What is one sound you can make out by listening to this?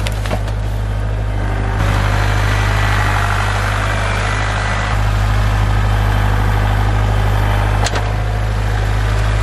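A tractor engine runs with a steady, loud rumble close by.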